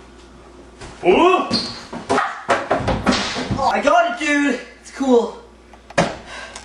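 A young man shouts and laughs excitedly.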